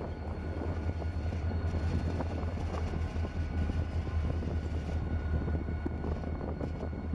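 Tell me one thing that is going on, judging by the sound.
Steel train wheels clatter and squeal on the rails.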